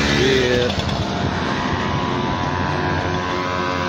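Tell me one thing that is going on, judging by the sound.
A motorbike engine hums as it rides by.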